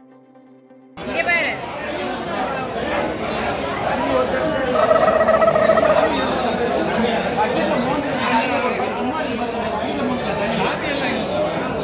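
Many people chatter in a large, echoing hall.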